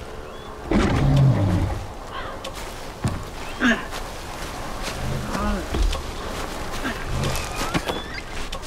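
A large animal grunts and bellows.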